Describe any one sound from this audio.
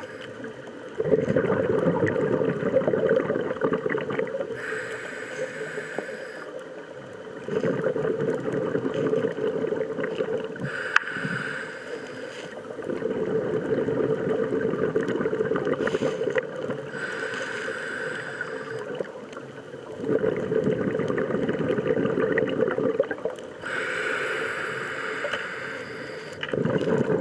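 Bubbles gurgle and rumble underwater as a scuba diver breathes out.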